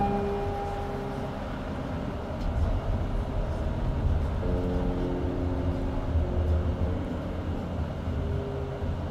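A car's tyres rumble steadily on a road.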